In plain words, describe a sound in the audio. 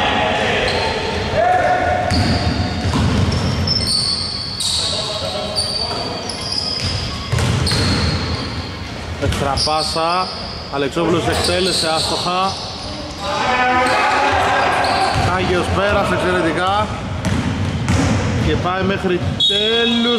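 A basketball bounces with dull thumps on the floor.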